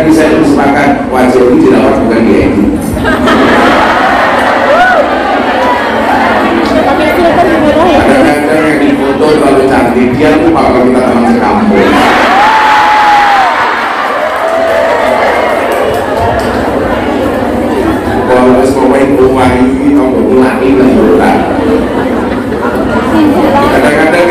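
A man speaks with animation through a microphone and loudspeakers in a large hall.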